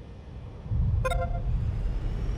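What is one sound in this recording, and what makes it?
A short bright chime rings as a structure is placed.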